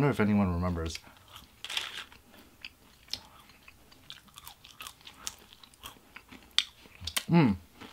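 A man chews food with soft smacking and crunching.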